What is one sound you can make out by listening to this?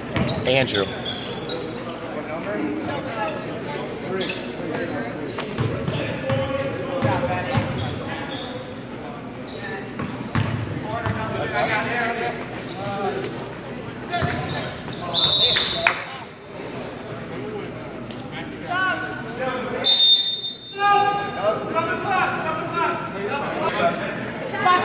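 Voices of a crowd of spectators chatter and call out in an echoing gym.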